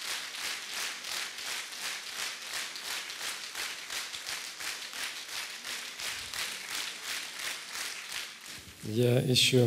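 An audience claps in steady rhythm in a large hall.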